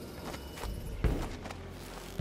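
A body lands with a heavy thud.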